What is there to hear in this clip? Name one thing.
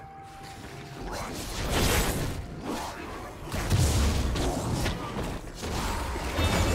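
Video game fight effects crash and whoosh in quick bursts.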